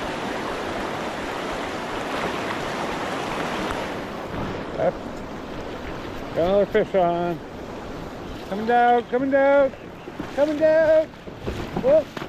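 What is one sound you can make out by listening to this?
A river rushes and splashes over rocks, loud at first and then softer.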